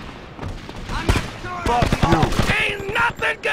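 A gun fires several rapid shots.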